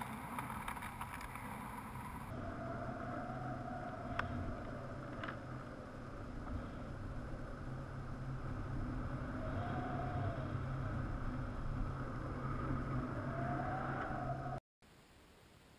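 Wind rushes loudly past in flight.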